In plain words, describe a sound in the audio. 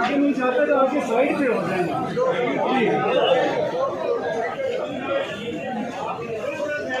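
A crowd of men shouts and talks over one another close by.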